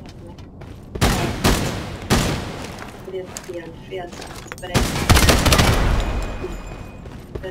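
Gunshots ring out in loud rapid bursts.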